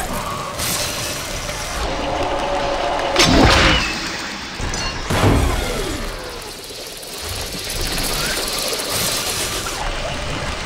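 A bowstring twangs.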